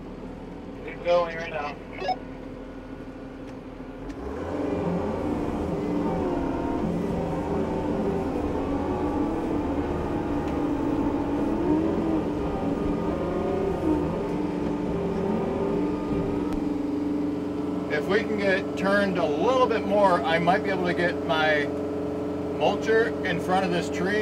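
A tractor engine runs with a steady, deep rumble.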